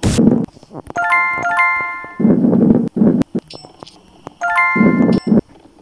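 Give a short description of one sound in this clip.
Short bright game chimes ring out.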